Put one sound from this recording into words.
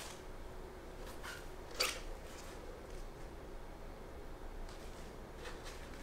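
Book pages rustle and flip as they are handled.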